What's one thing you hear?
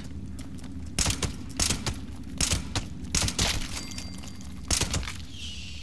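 A rifle fires several single sharp shots.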